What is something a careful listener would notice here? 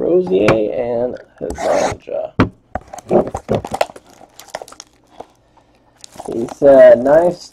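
A cardboard box rubs and taps as hands handle it.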